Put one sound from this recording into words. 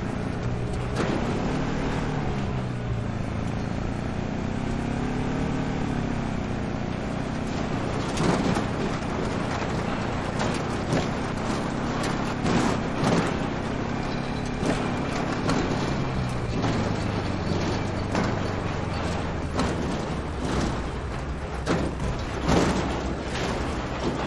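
A truck engine rumbles steadily as it drives over rough ground.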